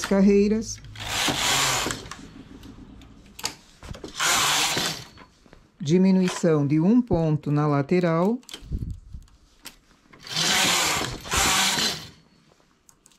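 A knitting machine carriage slides across the needle bed with a rushing rattle.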